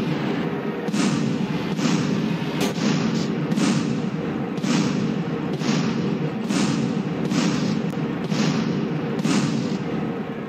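Explosions boom again and again.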